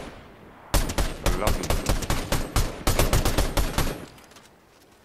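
A rifle fires rapid shots, loud and close.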